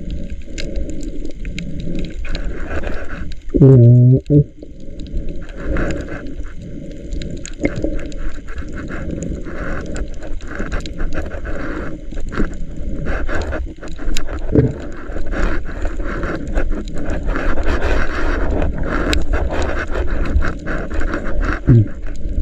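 Bubbles gurgle and rush from a diver's breathing underwater.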